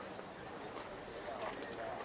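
A group of men murmurs nearby outdoors.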